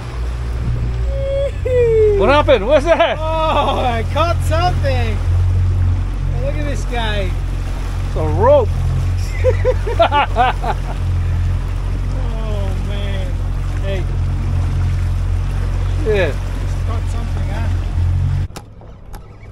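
An outboard motor drones steadily.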